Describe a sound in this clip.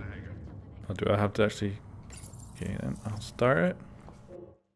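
A woman speaks calmly.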